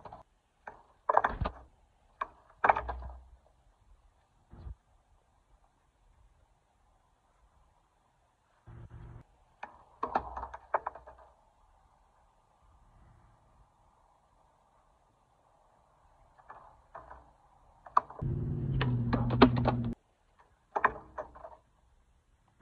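A skateboard clatters onto concrete.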